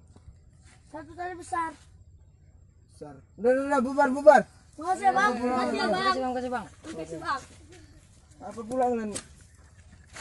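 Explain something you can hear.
Boys shout and talk excitedly nearby.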